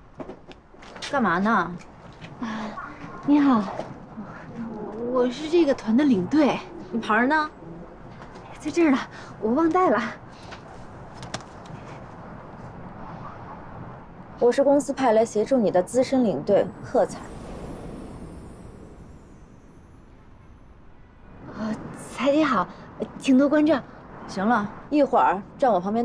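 A young woman speaks calmly and pleasantly up close.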